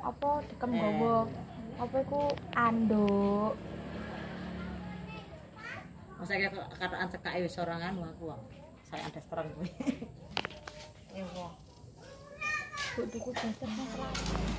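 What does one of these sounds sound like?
A young girl talks nearby in a casual way.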